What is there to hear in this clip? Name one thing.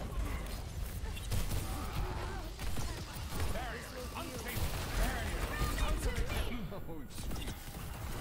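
Energy weapons fire in rapid, crackling bursts.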